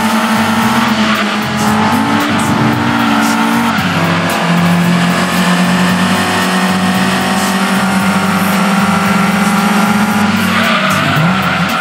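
A racing car engine drones at high revs, its pitch climbing as it speeds up.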